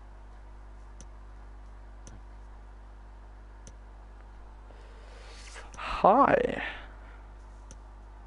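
A soft menu tick sounds as a calendar steps forward a day at a time.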